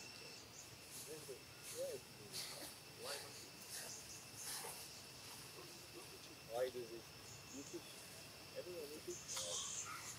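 Small monkeys squeak and chirp close by.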